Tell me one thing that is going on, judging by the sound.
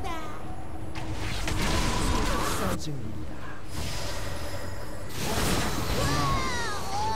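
Magic spells whoosh and crackle in a battle.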